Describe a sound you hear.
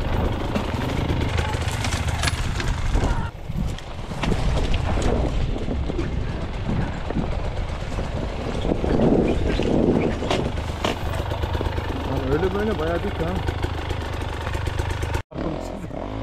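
A dirt bike engine revs and putters up a rough trail.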